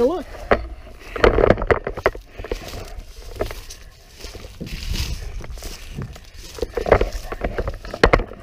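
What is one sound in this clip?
A man knocks and rattles plastic parts on a kayak.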